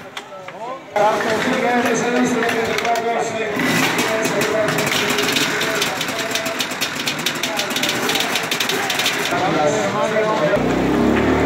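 Several motorcycle engines idle and rev loudly close by.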